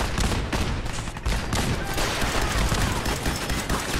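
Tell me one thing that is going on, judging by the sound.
A laser rifle fires rapid zapping shots.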